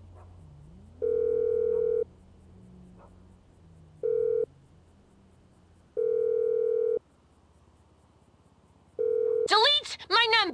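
A phone ringing tone sounds in long, even beeps.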